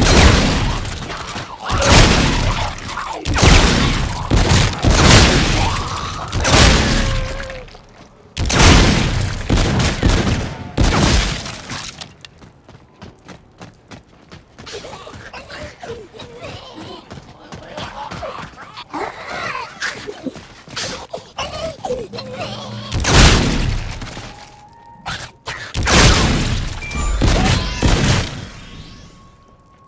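Guns fire in loud rapid bursts.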